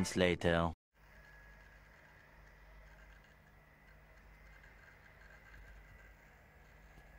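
A laptop hums faintly and steadily.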